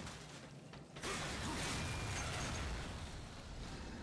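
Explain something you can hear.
A blade swings through the air with a loud magical whoosh.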